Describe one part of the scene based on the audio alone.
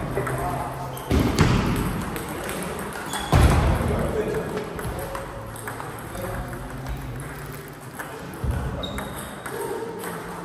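A table tennis ball clicks back and forth across a table in a large echoing hall.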